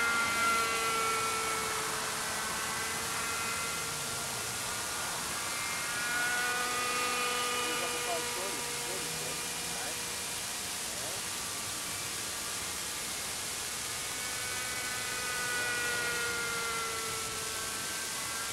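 A model helicopter's small engine whines high overhead, its pitch rising and falling as it swoops past.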